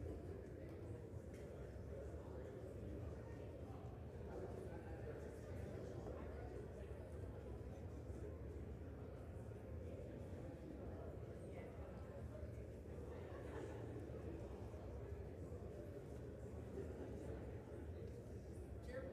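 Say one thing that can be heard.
Many voices murmur and chatter in a large echoing hall.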